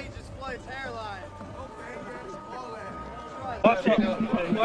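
A man speaks loudly to a crowd.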